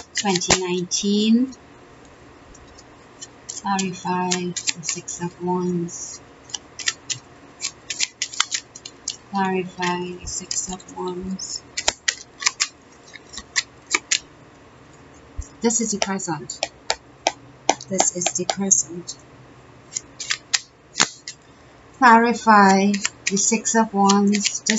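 Playing cards are shuffled with quick, soft flicking clicks.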